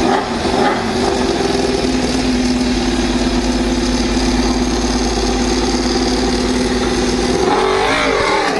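A racing motorcycle engine idles with a loud, steady rumble.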